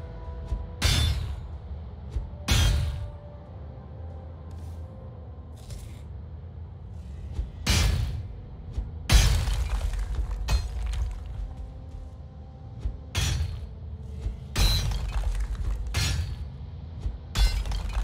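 A pickaxe strikes rock with sharp, ringing blows.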